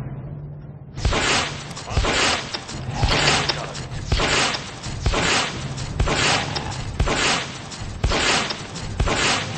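Cartoon blasters fire in rapid, repeated bursts.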